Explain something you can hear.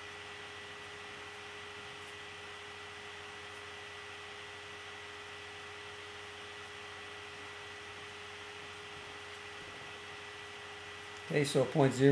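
A marker squeaks softly across paper.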